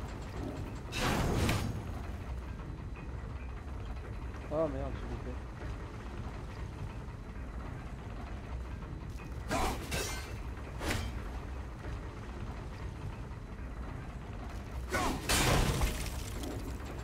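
An axe strikes a stone wall with a sharp, ringing crash.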